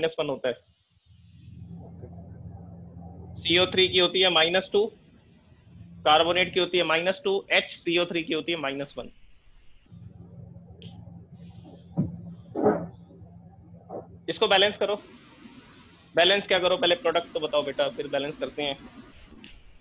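A man speaks calmly and clearly, as if explaining, close by.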